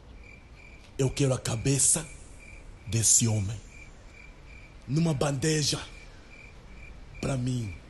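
A man speaks slowly in a low voice, close by.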